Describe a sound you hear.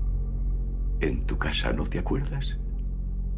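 An older man speaks softly with a sly tone, close by.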